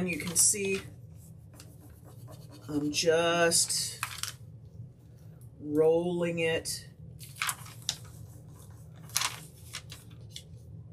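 A tool rubs and scrapes softly over paper.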